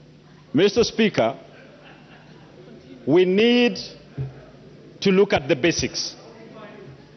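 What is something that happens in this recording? A middle-aged man speaks forcefully into a microphone, in short bursts with pauses.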